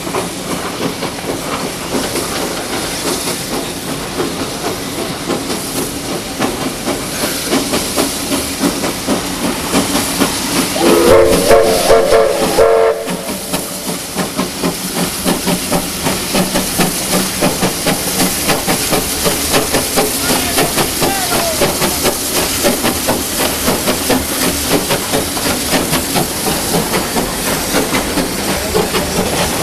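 A steam locomotive chuffs in a steady rhythm close by.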